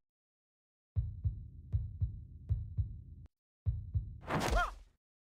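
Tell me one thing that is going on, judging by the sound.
Rapid punching thuds sound from a video game.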